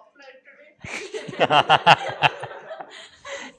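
A group of people laugh.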